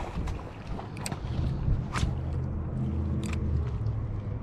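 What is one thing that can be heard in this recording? A fishing reel clicks and whirs close by.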